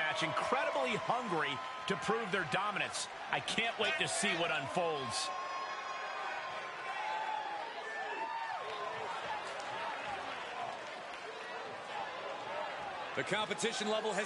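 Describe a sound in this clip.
A large crowd cheers and murmurs in a big arena.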